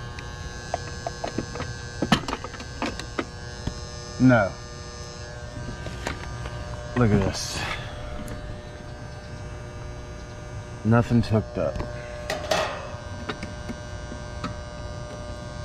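Small tools click and tap against metal.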